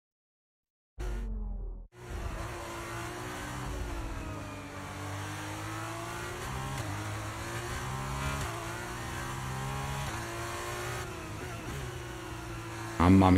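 A racing car engine whines at high revs, rising and falling as gears shift.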